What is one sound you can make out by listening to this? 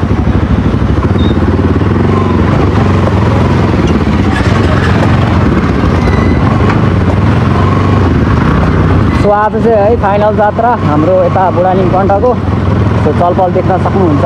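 A motorcycle engine idles and putters at low speed.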